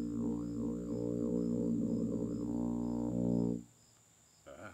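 A tuba plays a low, sustained melody up close.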